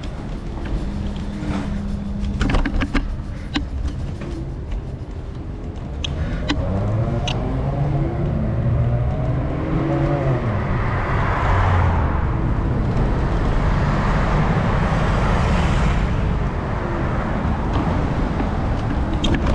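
Traffic hums and rushes by on a busy street nearby.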